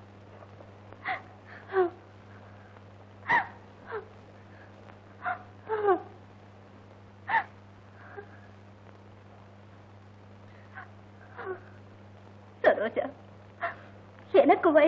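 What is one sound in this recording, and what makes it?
A middle-aged woman sobs and gasps in short bursts close by.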